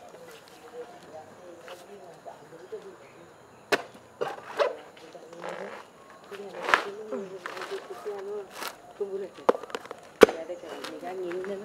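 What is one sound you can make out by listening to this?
A woman tears husk off a coconut with thudding knocks.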